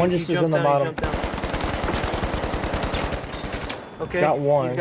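A rifle fires a long rapid burst.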